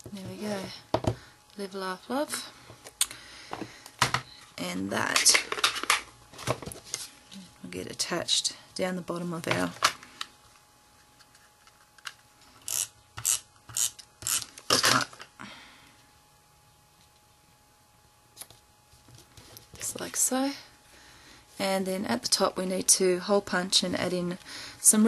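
Paper rustles and slides as it is handled.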